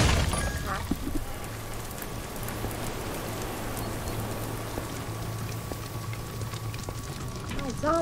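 Footsteps patter on stone paving.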